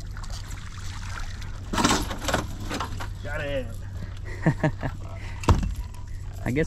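Fishing gear clatters and knocks on a boat deck.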